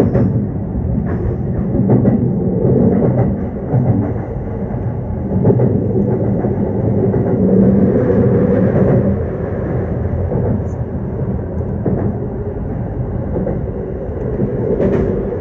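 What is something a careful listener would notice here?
A train rumbles steadily along the tracks from inside the cab.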